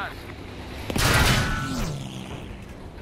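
A loud explosion bursts nearby.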